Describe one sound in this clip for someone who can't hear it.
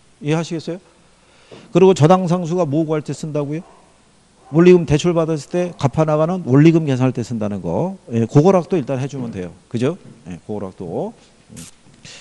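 A middle-aged man speaks with animation through a clip-on microphone.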